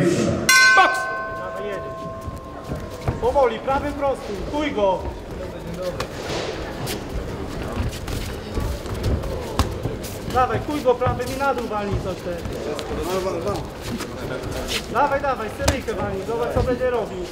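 An elderly man calls out loudly.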